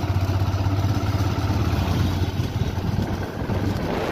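A motorbike passes close by.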